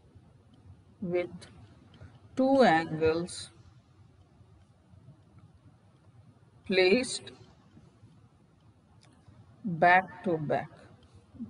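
A woman speaks calmly in short phrases through a microphone on an online call.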